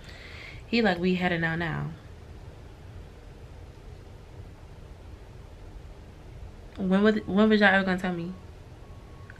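A young woman speaks close by, in a casual, drawn-out tone.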